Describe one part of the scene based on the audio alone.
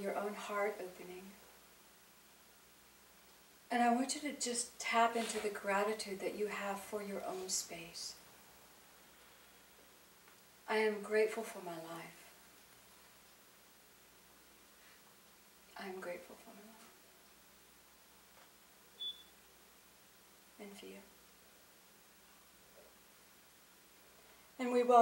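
A middle-aged woman speaks slowly and expressively into a microphone, with long pauses.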